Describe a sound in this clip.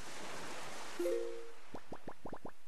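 A game menu opens with a short chime.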